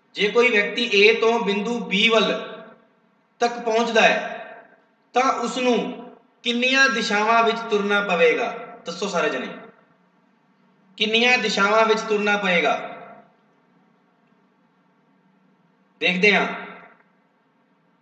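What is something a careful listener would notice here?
A man speaks calmly into a close microphone, explaining in bursts with pauses.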